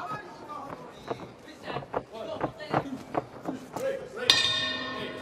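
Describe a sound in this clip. Gloves thud against a body in quick, sharp blows.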